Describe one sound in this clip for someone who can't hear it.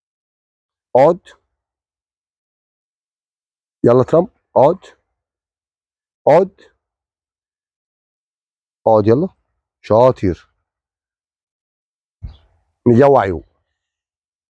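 A man gives short, firm commands to a dog, close by, with silence in between.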